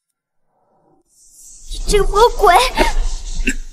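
A young woman speaks with emotion.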